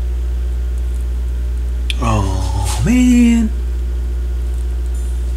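A turntable hums low and steadily.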